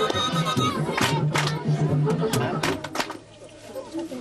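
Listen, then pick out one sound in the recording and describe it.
Hands clap sharply in the crowd.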